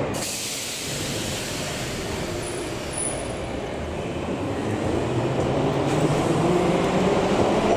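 A subway train pulls away, its rumble growing louder and echoing.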